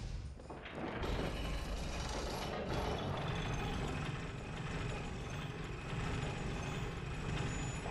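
An elevator rumbles and clanks steadily as it rises.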